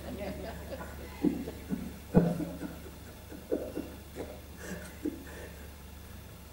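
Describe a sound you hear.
A middle-aged man laughs softly.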